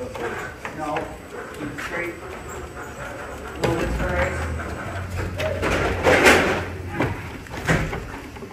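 A man talks close by, calmly.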